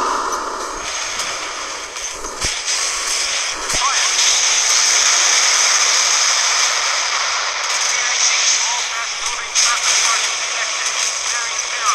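Naval guns boom in a series of heavy blasts.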